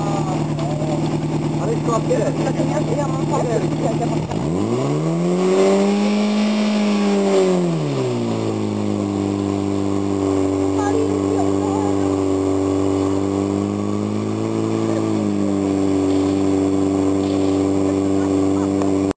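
A pump engine runs loudly nearby, its pitch dropping, rising and settling as it revs.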